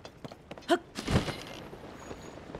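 Something plunges into water with a splash.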